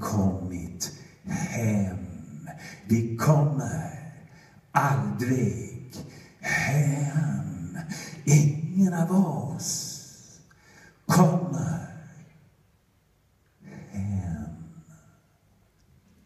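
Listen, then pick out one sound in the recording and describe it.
A woman sings slowly through a microphone.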